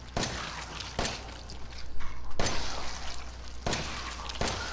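Pistol shots ring out with sharp cracks.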